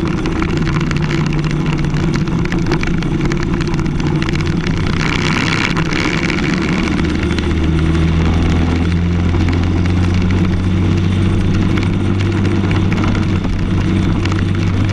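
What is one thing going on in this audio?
A kart engine buzzes loudly close by, its pitch rising as it speeds up.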